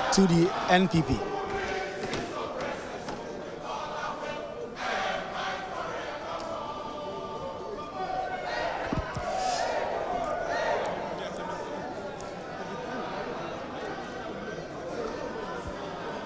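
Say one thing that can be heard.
A crowd of men and women murmurs and talks over one another.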